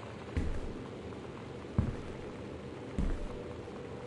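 A small wooden cabinet door bangs shut.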